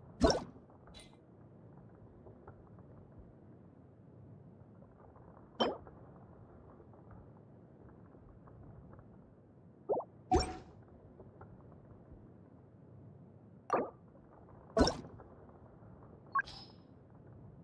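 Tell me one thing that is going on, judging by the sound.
Game menu clicks and chimes sound sharply now and then.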